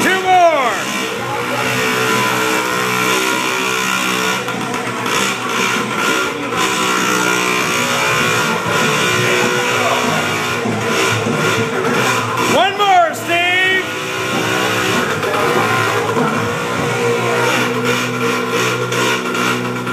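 A small motorbike engine buzzes and revs up close indoors.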